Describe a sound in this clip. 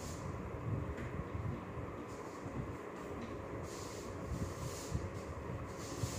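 A cloth rubs and squeaks against a whiteboard.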